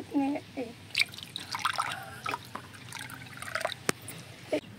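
Liquid pours and splashes into a mug.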